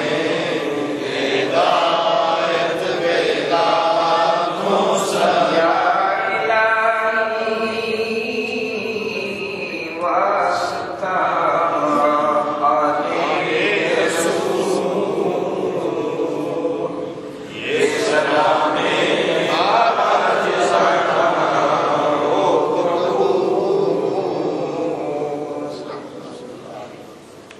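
An elderly man recites a prayer aloud, close by and chanting.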